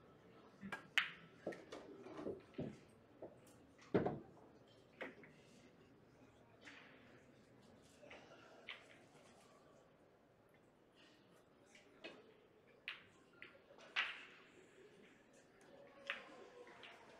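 Billiard balls clack against each other and roll on the table.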